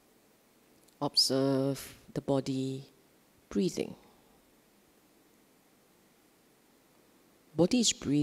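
A middle-aged woman speaks calmly into a microphone, with pauses.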